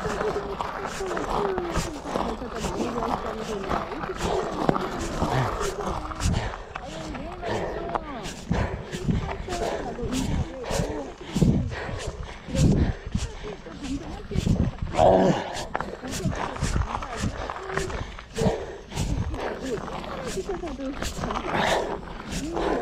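Wind buffets past while riding outdoors.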